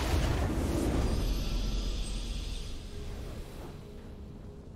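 A short triumphant fanfare plays.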